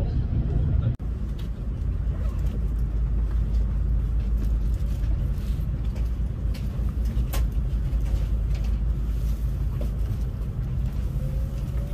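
A train rolls slowly past with a low rumble.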